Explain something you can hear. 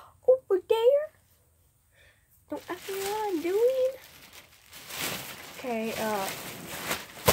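A young girl speaks close by with animation.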